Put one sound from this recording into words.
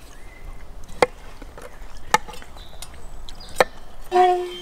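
A metal fork clicks sharply against a wooden board.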